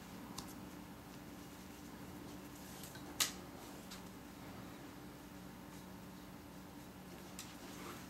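Cord rustles and scrapes softly as hands braid it.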